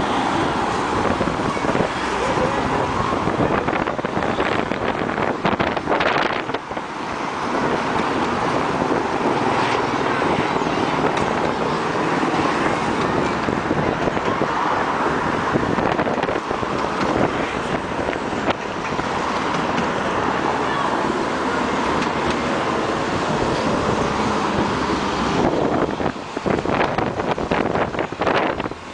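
Cars drive past close by on a road.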